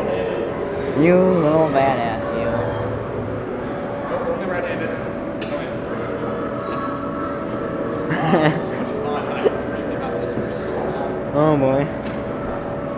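A man laughs and whoops loudly nearby.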